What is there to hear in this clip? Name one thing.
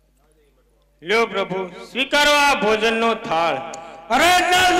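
A woman sings loudly through a microphone and loudspeaker.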